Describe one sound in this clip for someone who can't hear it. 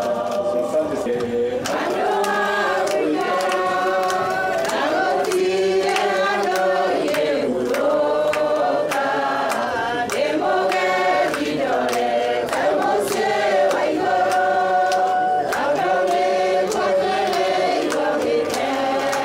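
A group of men and women sing a slow hymn together.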